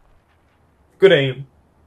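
A young man speaks briefly and close to a microphone.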